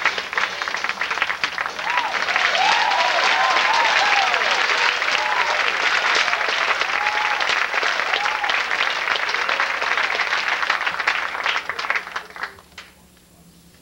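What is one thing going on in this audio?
An audience claps and cheers loudly, then the applause stops abruptly.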